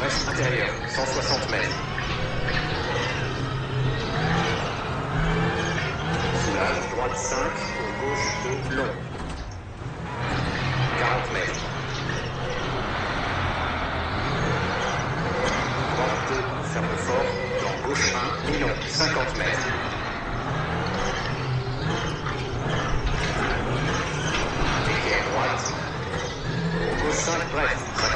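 A rally car engine revs and roars.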